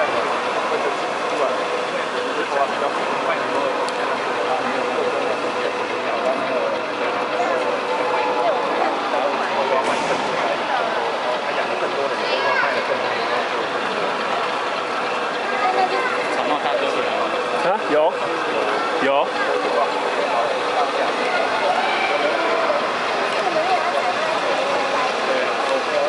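A model train rolls steadily along its track close by.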